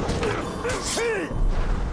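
A sword strikes a creature with a heavy blow.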